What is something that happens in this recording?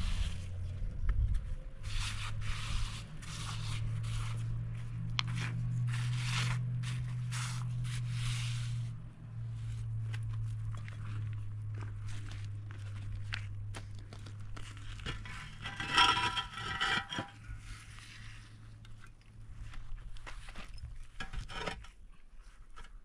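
Stones and gravel scrape and clatter under a woman's hands.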